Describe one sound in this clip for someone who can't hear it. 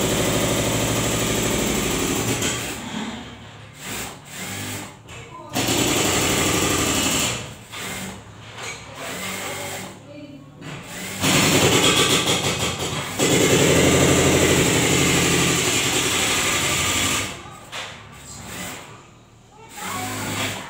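A sewing machine whirs in steady bursts, stopping and starting.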